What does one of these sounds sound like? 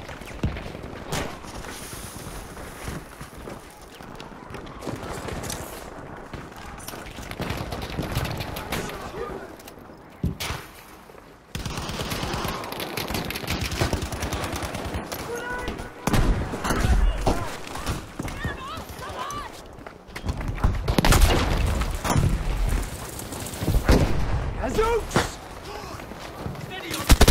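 Gunfire cracks and booms nearby in rapid bursts.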